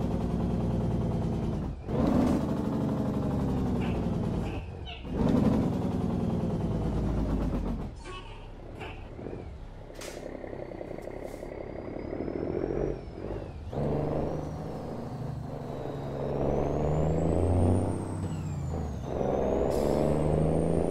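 A heavy truck engine rumbles and revs, dropping in pitch at each gear change.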